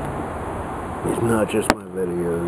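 A middle-aged man speaks close by, casually.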